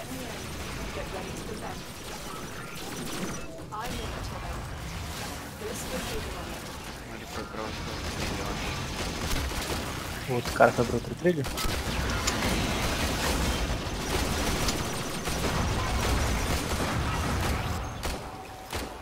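Energy blasts whoosh and crackle.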